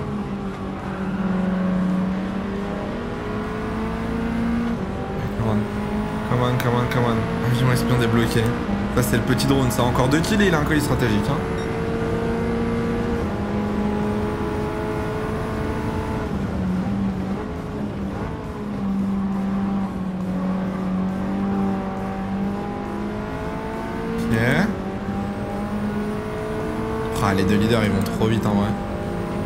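A racing car engine roars steadily, rising and falling in pitch as the gears change.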